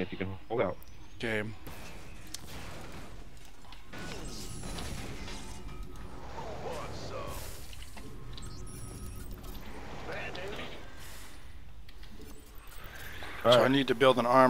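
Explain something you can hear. Short electronic game sounds beep and chirp.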